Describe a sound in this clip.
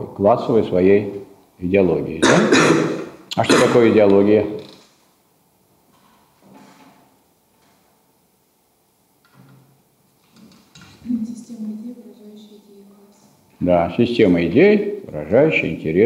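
A man lectures with animation in a room with a slight echo, pausing now and then.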